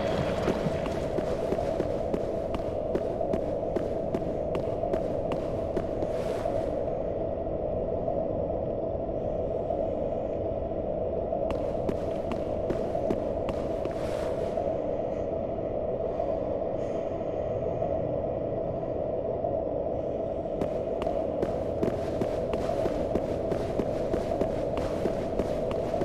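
Heavy armored footsteps clank on a stone floor.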